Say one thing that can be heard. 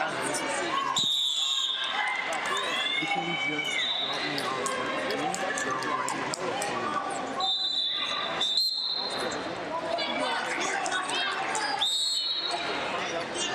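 A referee blows sharp blasts on a whistle.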